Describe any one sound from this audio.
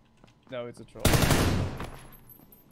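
A rifle fires a loud burst of gunshots that echo off.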